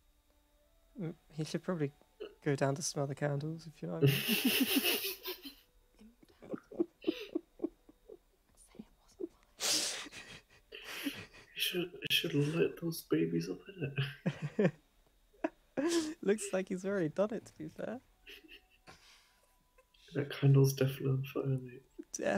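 A young man talks and laughs over an online call.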